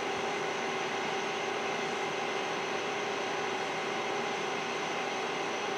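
A machine hums steadily nearby.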